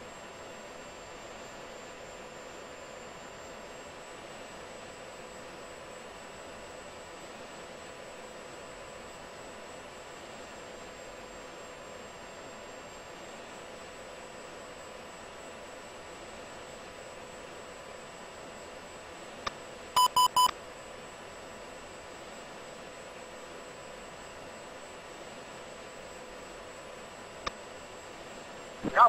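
A jet engine roars steadily from inside the cockpit.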